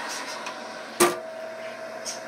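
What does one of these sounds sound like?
An oven door shuts with a sharp clunk.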